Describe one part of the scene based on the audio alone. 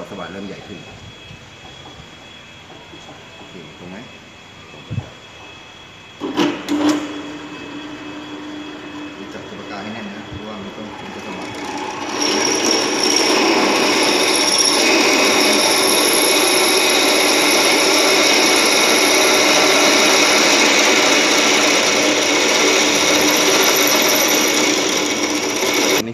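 A drill press motor runs.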